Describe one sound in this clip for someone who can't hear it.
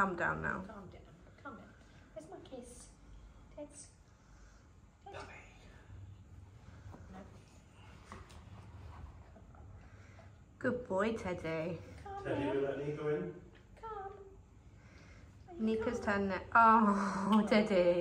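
A middle-aged woman talks softly and affectionately to a dog close by.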